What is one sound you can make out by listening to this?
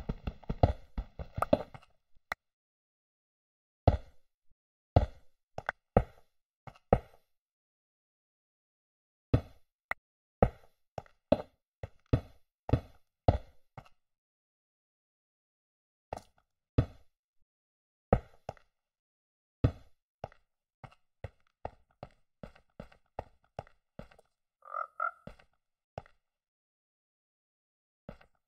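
Stone blocks are set down with short dull thuds, one after another.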